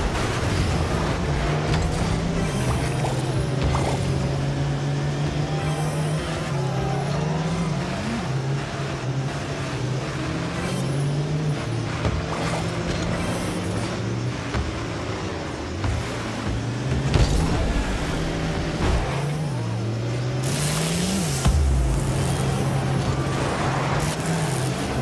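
A car engine hums steadily, its pitch rising and dropping as it speeds up.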